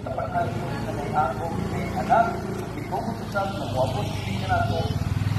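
A woman talks loudly outdoors nearby.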